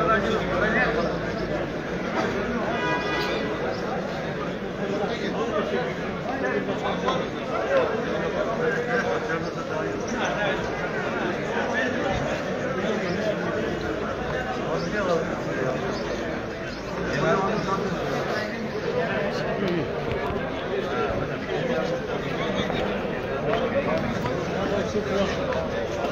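A large crowd of men murmurs and talks outdoors.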